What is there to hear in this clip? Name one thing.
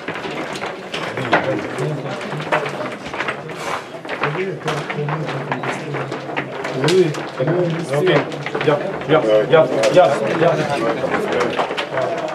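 Several young men talk casually nearby.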